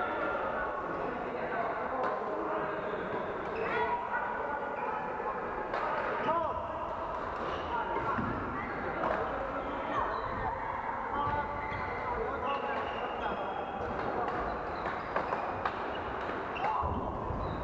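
Rackets hit a shuttlecock with sharp pops.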